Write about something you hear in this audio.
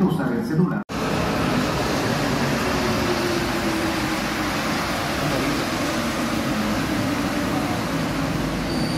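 A metro train rolls steadily along past a platform.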